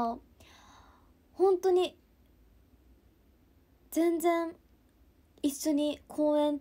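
A young woman speaks calmly and softly, close to a microphone, in short phrases.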